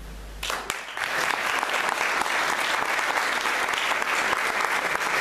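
A crowd applauds loudly in a hall.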